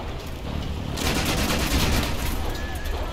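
A loud explosion booms and crackles with fire.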